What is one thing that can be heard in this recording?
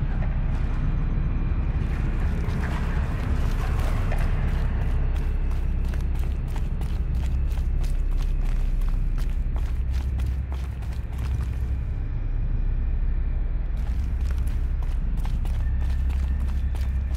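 Wind howls in a cave.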